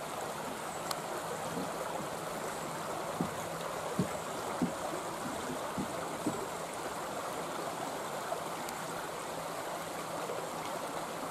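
Water rushes steadily in the distance.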